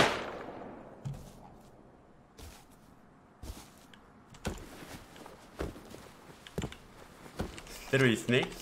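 Footsteps crunch on dirt and leaves.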